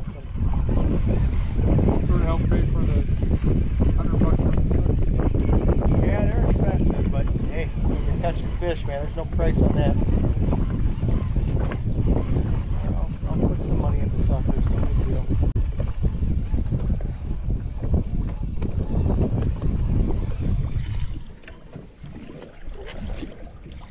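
Water splashes and laps against a boat's side.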